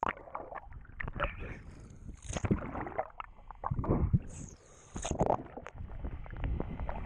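Water splashes and bubbles close by.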